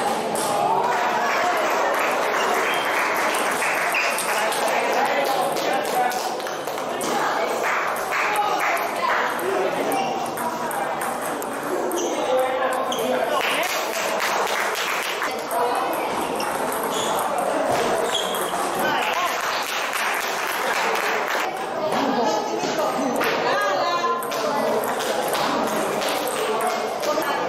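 Children chatter throughout, echoing in a large hall.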